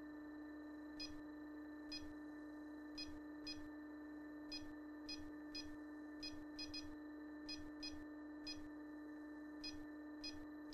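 An electronic keypad beeps with short, quick tones, again and again.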